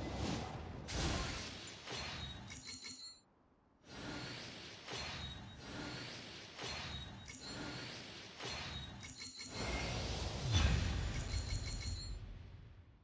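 Short chiming reveal sounds ring out one after another.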